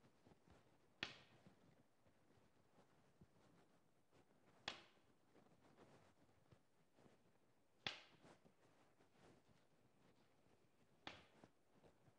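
A walking cane taps slowly on a hard floor.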